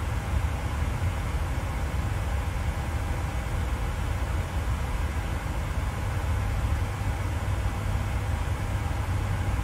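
A steady low jet engine rumble drones on.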